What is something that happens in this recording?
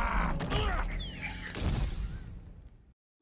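Magic energy whooshes and crackles.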